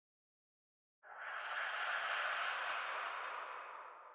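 A puff of smoke bursts out with a rushing hiss.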